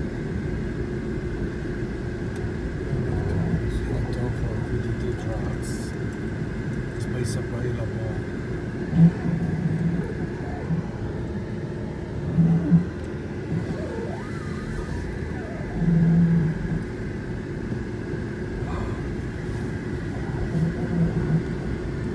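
Tyres rumble over concrete in an echoing enclosed space.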